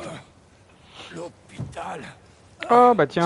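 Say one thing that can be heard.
An elderly man mumbles groggily up close.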